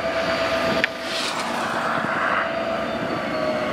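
A car drives past quickly.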